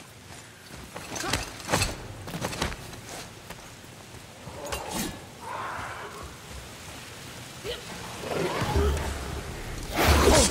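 Heavy wooden gears clack and rumble as they are pushed round.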